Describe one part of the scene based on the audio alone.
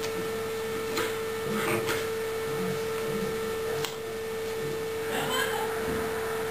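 A young man's hands slap and brush together.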